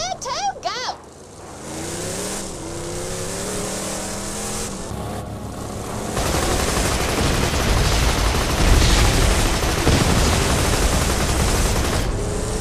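A vehicle engine hums and revs as it drives.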